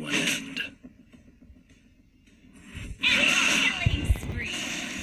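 Game sound effects clash and whoosh in a fight.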